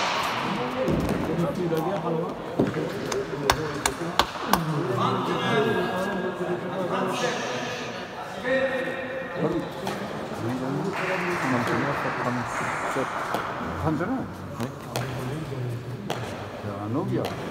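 Young men talk and call out nearby in an echoing hall.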